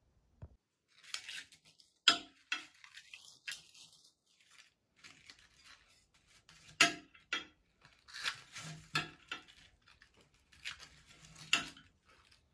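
Crisp potato chips crunch and rustle as they are mixed by hand.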